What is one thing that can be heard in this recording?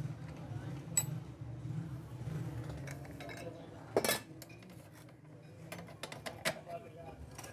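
Metal parts click and clack as they are handled.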